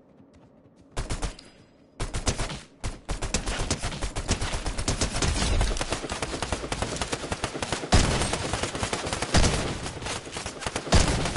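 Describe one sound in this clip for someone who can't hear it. A gun fires rapid, loud shots.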